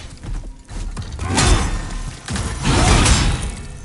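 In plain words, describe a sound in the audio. Heavy blows strike with deep thuds.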